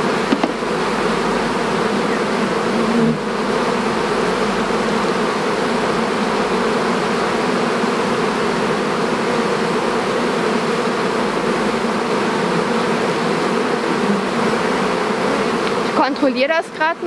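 Bees buzz steadily around a hive.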